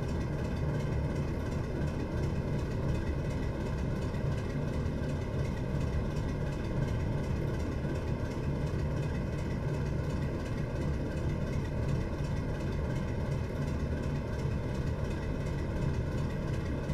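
A diesel locomotive engine drones steadily with a low rumble.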